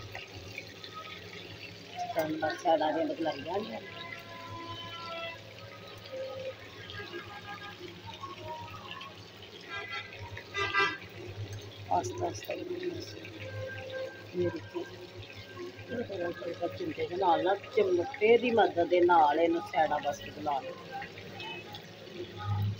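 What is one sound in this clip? A metal spatula scrapes and taps against a frying pan.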